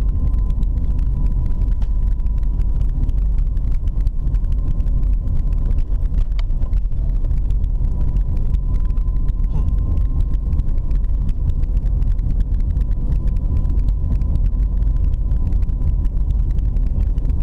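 Tyres rumble on a paved road.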